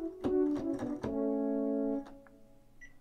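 A synthesizer keyboard plays a short run of notes and a held chord.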